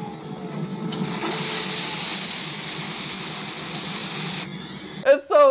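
A hose sprays a hissing jet of water.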